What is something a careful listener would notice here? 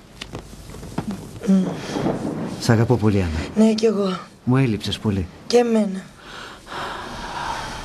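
A man sobs and sniffles.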